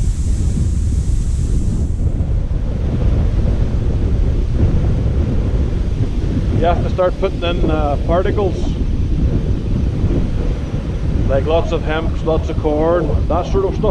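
Wind blusters across the microphone.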